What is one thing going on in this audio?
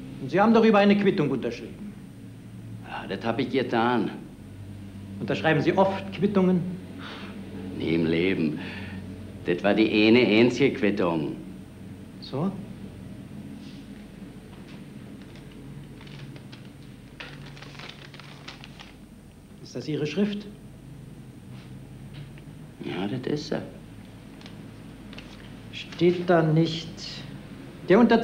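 A middle-aged man speaks tensely in reply.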